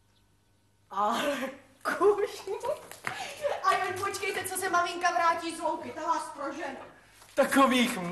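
A young woman sings.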